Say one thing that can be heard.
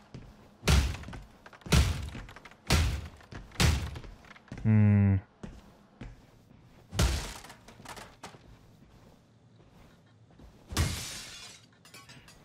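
Heavy blows smash and crash through objects again and again.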